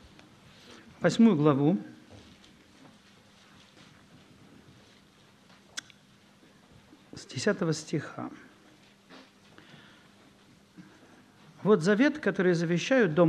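A man reads aloud slowly into a microphone, with long pauses.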